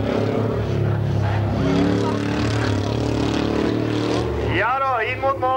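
A car engine roars as a car races along a gravel track.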